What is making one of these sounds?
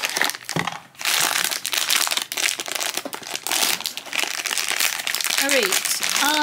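A foil wrapper crinkles and rustles loudly.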